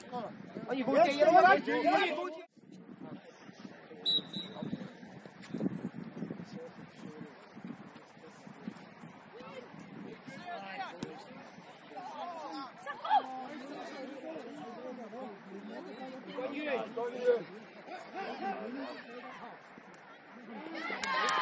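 Men on the sideline shout and call out loudly outdoors.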